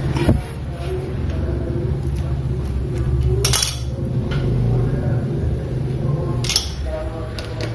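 Metal engine parts clink and rattle as they are handled.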